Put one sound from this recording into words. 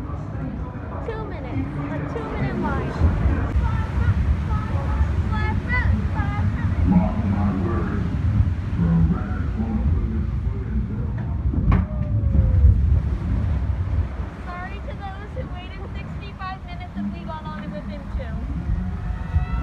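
Young women talk excitedly nearby.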